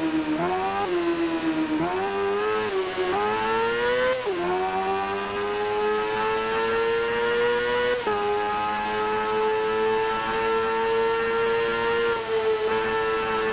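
A motorcycle engine revs high, its pitch climbing and dropping with each gear change.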